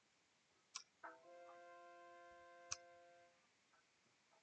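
A soft chime rings out and slowly fades.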